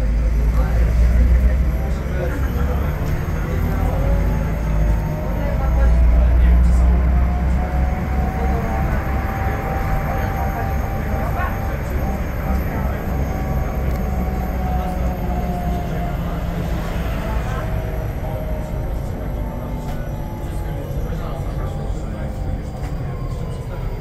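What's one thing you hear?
A vehicle's engine rumbles steadily from inside.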